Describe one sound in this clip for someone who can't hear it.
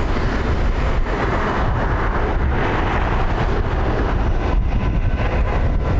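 A jet airliner's engines roar steadily as it taxis past.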